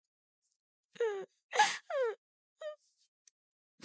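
A young girl speaks quietly in a small voice.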